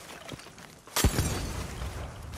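A bottle shatters with a burst of fire.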